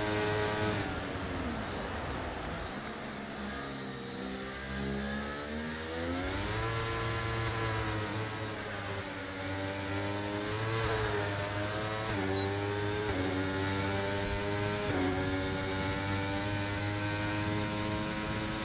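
A racing car engine whines loudly, dropping in pitch when braking and rising as it speeds up through the gears.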